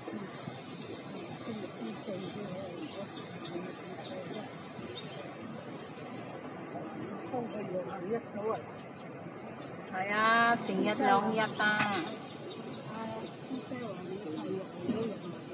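A young woman talks calmly, close to the microphone.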